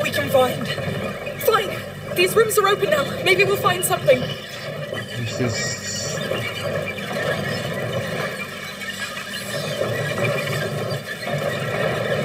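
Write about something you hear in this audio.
A heavy wooden mechanism creaks and grinds as it turns.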